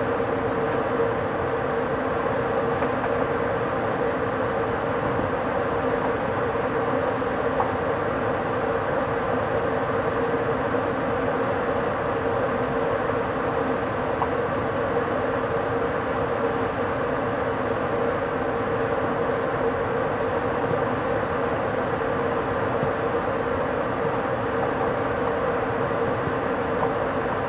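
A train rolls steadily along the rails at speed.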